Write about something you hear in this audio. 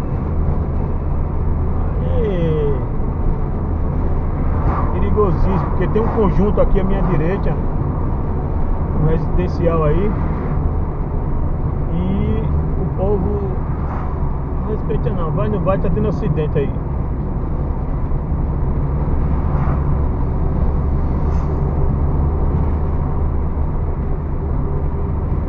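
A car engine hums steadily with road noise from the tyres.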